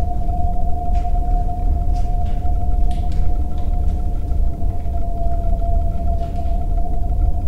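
Footsteps scrape on a hard floor.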